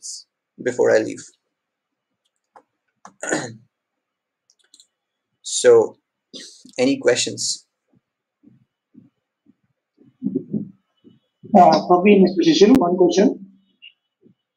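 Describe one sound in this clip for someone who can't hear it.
A young man speaks calmly in short phrases close to a microphone.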